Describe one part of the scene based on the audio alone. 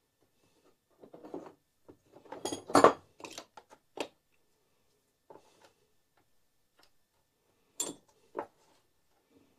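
A metal tool clicks and taps against engine parts.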